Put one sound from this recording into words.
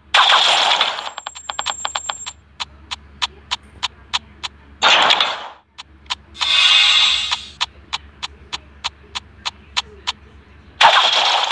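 Coins clink in quick ticks as they are collected.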